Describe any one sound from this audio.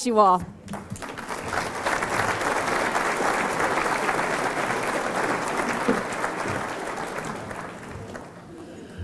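A crowd applauds steadily, then the clapping fades.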